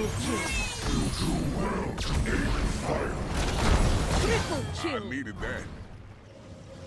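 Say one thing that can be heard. Fiery blasts and magic zaps burst in quick succession.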